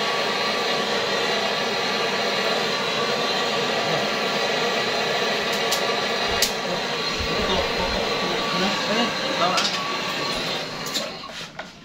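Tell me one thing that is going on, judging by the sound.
Gas hisses loudly and steadily from a cylinder, then stops.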